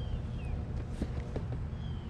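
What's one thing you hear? A cardboard box rustles and bumps as a hand lifts it.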